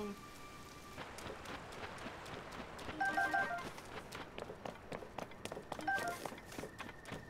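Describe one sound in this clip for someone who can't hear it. Footsteps patter quickly over rocky ground.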